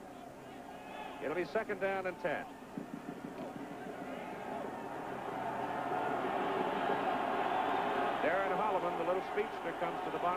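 A large stadium crowd roars, growing louder.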